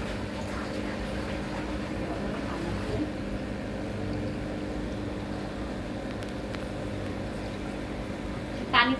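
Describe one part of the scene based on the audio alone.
Air bubbles fizz and burble steadily in water.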